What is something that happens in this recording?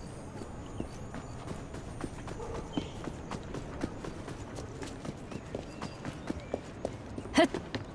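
Footsteps run over cobblestones.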